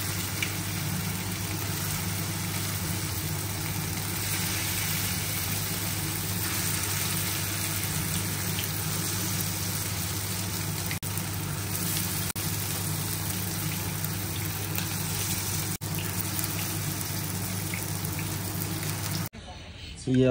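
Oil sizzles and crackles steadily in a hot pan.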